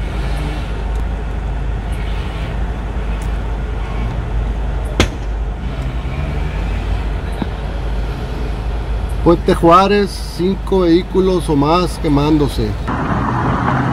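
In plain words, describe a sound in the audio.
A fire roars and crackles outdoors in wind.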